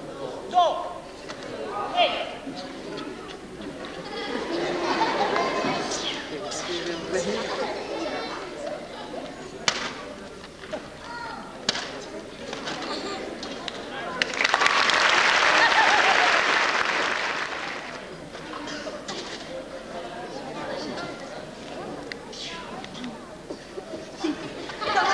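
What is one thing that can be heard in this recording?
A large audience laughs and murmurs in a big echoing hall.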